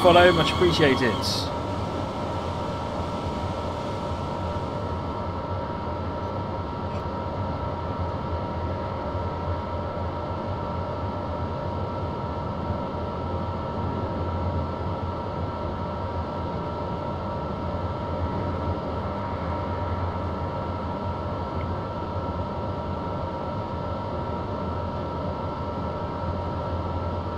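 A train's electric motor hums steadily.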